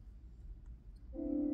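An organ sounds a steady held note.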